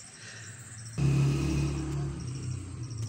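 A hoe scrapes and thuds into dry soil.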